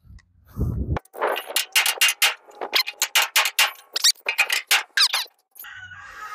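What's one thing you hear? A hammer strikes metal in quick repeated blows.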